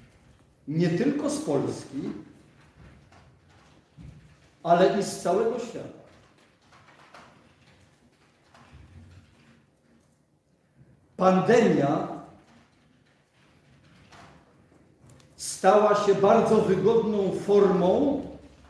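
An elderly man speaks in short bursts with pauses, in a room with a slight echo.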